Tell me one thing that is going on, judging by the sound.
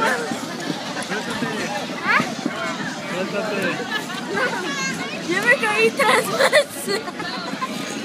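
A young boy laughs close by.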